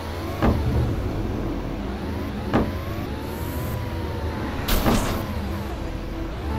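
A small kart engine hums steadily.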